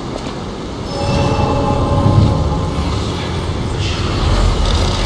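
Electricity crackles and buzzes.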